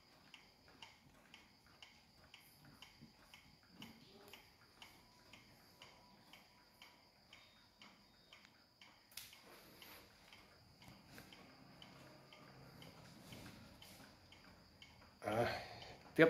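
A mechanical pendulum wall clock ticks.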